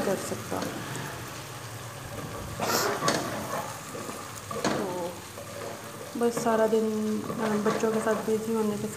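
Food sizzles in a hot pot.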